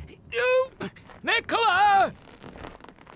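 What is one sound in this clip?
An elderly man groans and cries out with strain, close by.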